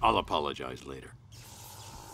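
A man speaks in a deep, low voice.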